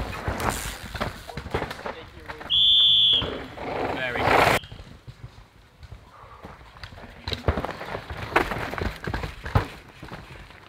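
A mountain bike's frame and chain clatter over bumps.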